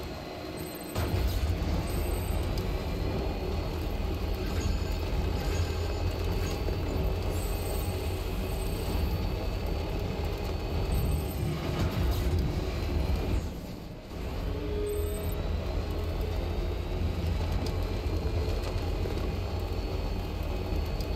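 A truck engine rumbles steadily as it drives along.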